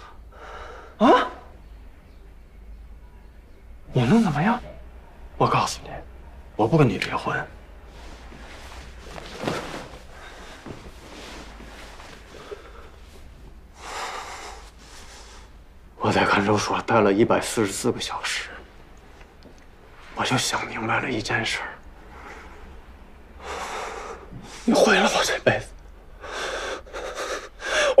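A man speaks emotionally, close by.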